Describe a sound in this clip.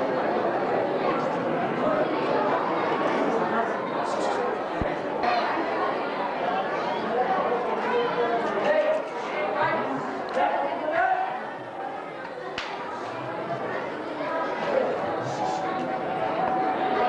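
A woman speaks in reply, heard through a loudspeaker.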